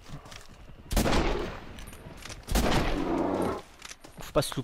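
A rifle fires loud shots that echo outdoors.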